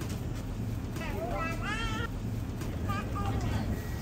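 A little girl babbles in a high voice close by.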